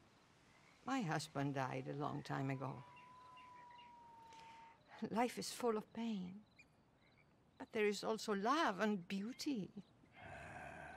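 An elderly woman speaks gently and calmly.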